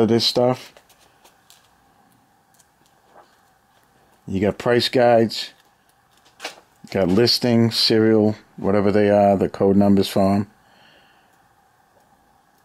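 Book pages rustle and flap as they are turned by hand.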